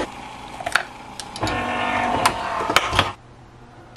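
A coffee machine lid snaps shut with a click.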